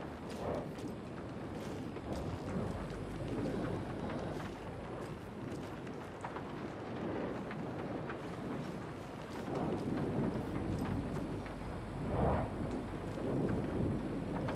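Footsteps shuffle slowly over debris on a wooden floor.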